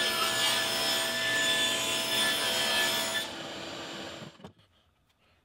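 A table saw blade spins with a loud whine, then winds down.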